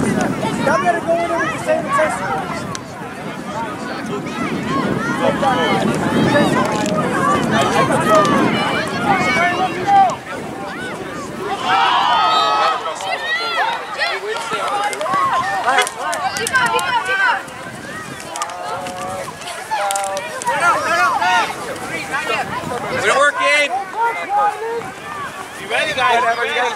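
Children shout and call to each other across an open field outdoors.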